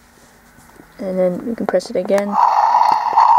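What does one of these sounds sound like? A toy dragon plays a short electronic growling sound effect.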